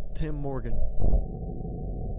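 A large cannon fires with a deep, thunderous boom.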